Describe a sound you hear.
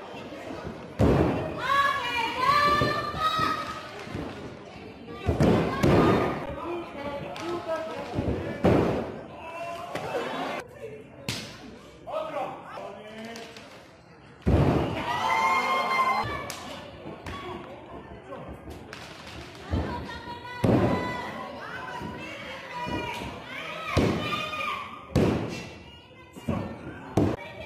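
Wrestlers slam down hard onto a ring mat with loud thuds.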